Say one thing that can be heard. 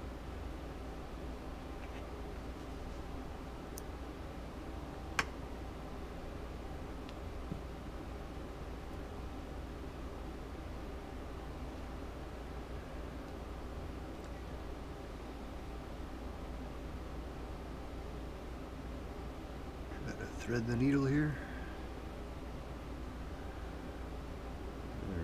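Thread rustles softly as it is pulled through cloth by hand.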